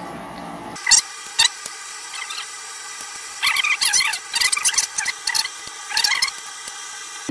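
A metal spatula scrapes and clatters against a metal pan.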